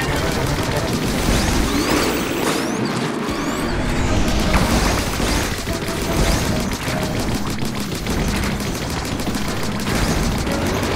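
Ink guns splat and fire rapidly.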